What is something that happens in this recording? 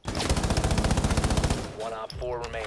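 A gun fires a rapid burst of shots, loud and close.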